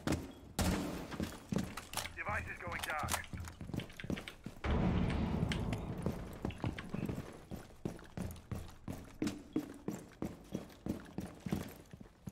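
Footsteps tread quickly across a hard floor.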